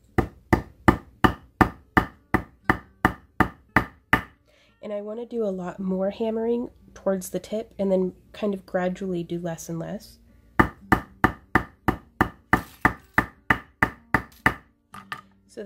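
A small metal hammer taps rapidly and evenly on a hard stone surface.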